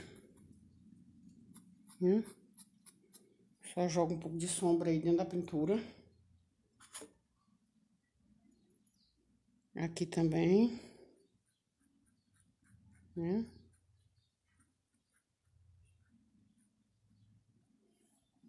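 A paintbrush strokes softly on cloth.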